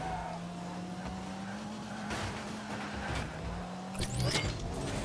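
Game car engines hum steadily.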